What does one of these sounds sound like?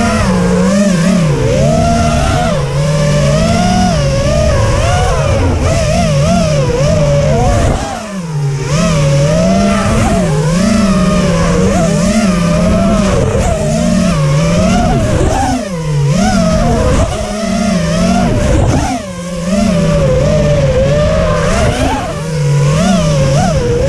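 A small racing drone's motors whine loudly, rising and falling in pitch as it darts about.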